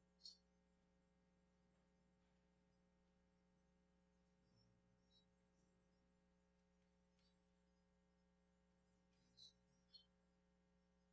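A metal dish clinks softly.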